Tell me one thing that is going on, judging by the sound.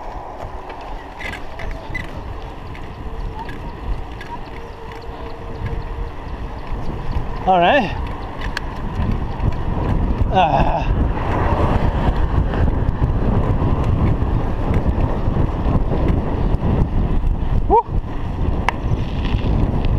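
Wind rushes and buffets around a bicycle ridden along a paved road.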